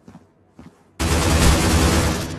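A rifle fires in a rapid burst of loud shots.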